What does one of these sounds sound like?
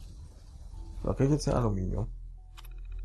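An old computer terminal powers up with a rising electronic tone.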